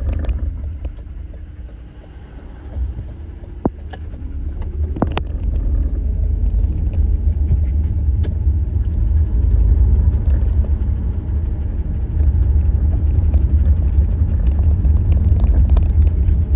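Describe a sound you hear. Road noise rumbles inside a car driving on a highway.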